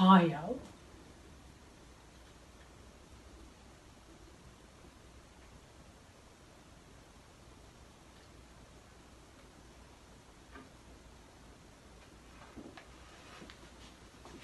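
Water pours gently from a jug.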